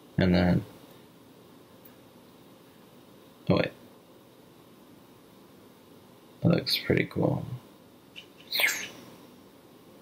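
A young man speaks briefly and close by, in short bursts.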